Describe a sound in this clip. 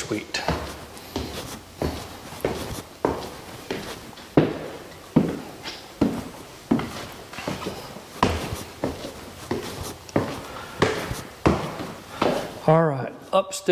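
Footsteps thud on wooden stairs and floor.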